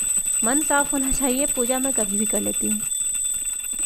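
A woman sings a short chant nearby.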